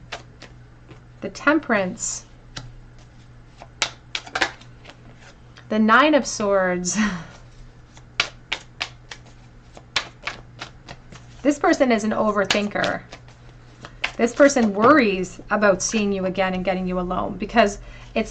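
A hand lays cards softly on a cloth.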